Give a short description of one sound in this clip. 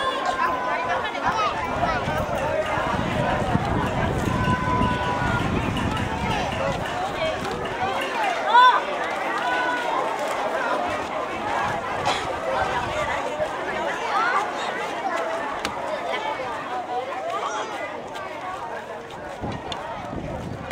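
Children shout and call out nearby.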